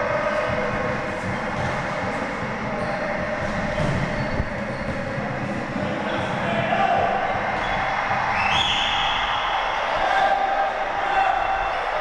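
A ball is kicked and thuds across a hard floor in an echoing hall.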